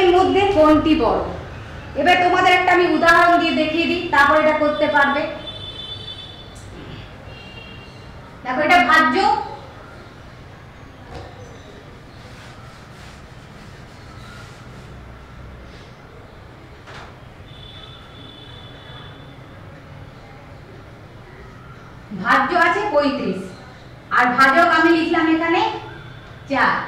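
A woman speaks clearly and calmly, as if teaching, with pauses.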